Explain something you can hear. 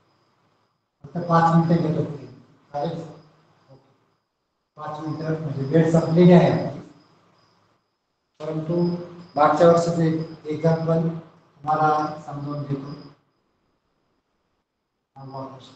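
A middle-aged man speaks clearly in a teaching manner, close by.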